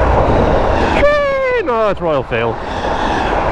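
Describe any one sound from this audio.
A train horn blares and drops in pitch as it passes.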